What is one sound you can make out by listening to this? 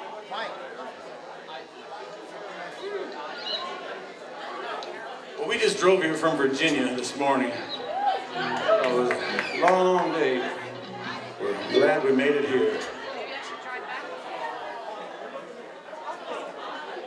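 A band plays guitars, upright bass and drums.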